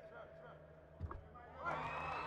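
A basketball clanks off the rim.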